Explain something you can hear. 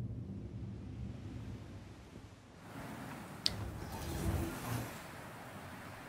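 A person climbs out through a metal hatch with heavy, muffled thuds.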